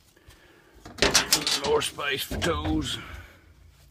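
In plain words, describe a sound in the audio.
A metal toolbox lid creaks and clanks open.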